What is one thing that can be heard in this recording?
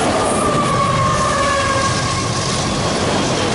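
Train wheels squeal briefly on the rails.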